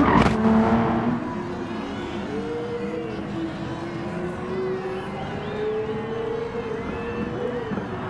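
Racing car engines drone and rise in pitch in the distance.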